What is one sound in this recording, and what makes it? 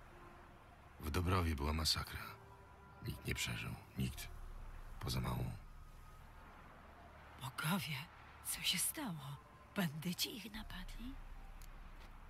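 An elderly woman speaks in a worried tone.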